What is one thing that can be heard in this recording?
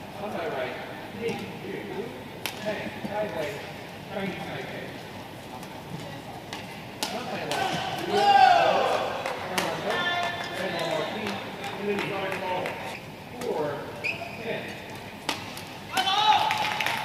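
Rackets strike a shuttlecock in a quick rally.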